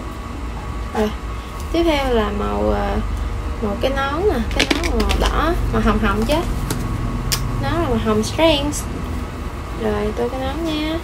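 A young woman speaks softly and close up.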